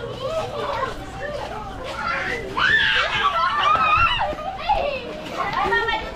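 Children shout and play nearby.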